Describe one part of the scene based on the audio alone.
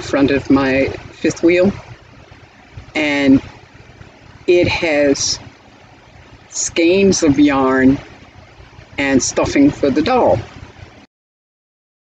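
An elderly woman speaks calmly and expressively, close to a microphone.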